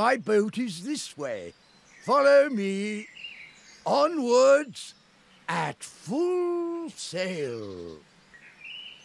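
An elderly man speaks cheerfully and loudly.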